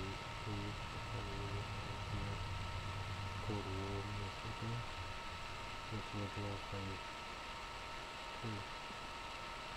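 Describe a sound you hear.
A young man speaks quietly and closely into a microphone.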